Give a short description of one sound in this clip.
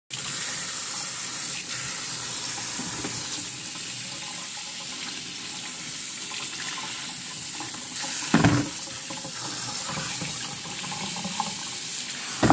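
Tap water runs steadily onto a sink.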